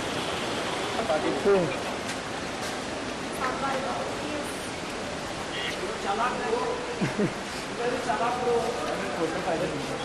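Several men shout and call out nearby, one after another.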